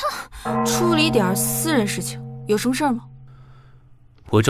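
A young woman asks a short question calmly nearby.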